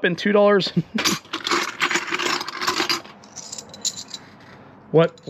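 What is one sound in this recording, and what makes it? Coins clink and rattle in a metal can.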